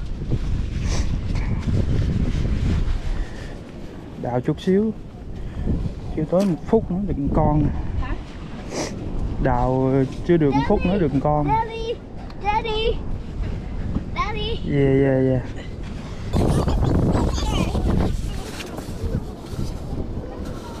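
Wind rumbles across the microphone outdoors.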